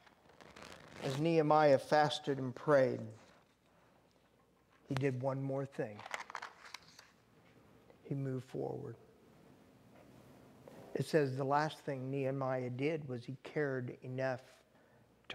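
A man speaks calmly and clearly, in short phrases with pauses.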